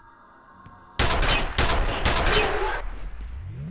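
A rifle fires loud, rapid bursts in an echoing space.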